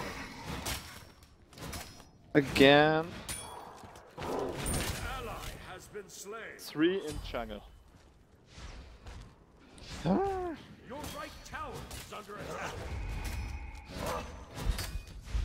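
Game sound effects of slashing and magic blasts ring out.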